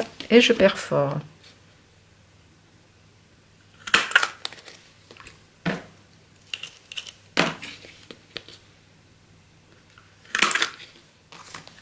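A hand punch clicks sharply through card.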